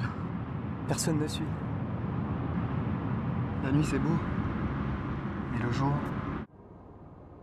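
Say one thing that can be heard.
A car drives along a tarmac road.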